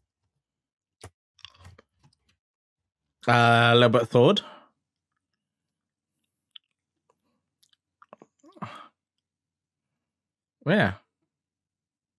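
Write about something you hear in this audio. A young man speaks briefly into a close microphone, with long pauses.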